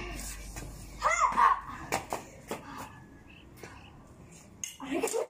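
A child shouts playfully nearby.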